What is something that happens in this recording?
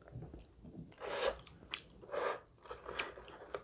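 A woman's fingers tear crusty toast with a crunch.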